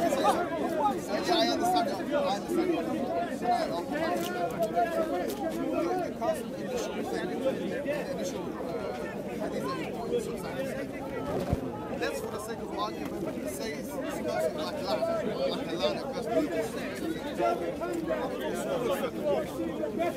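A man speaks with animation close to a microphone, outdoors.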